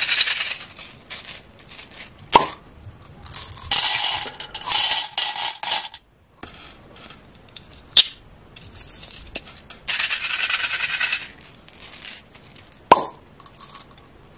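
Small plastic beads rattle inside a glass jar.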